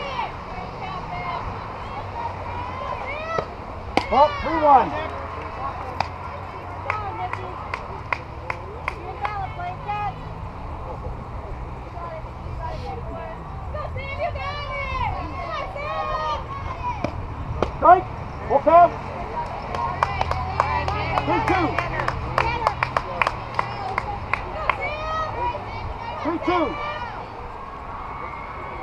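Young women cheer and shout from nearby outdoors.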